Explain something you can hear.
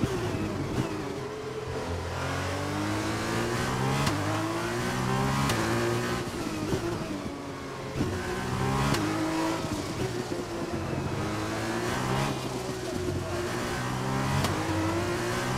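Gearshifts crack sharply.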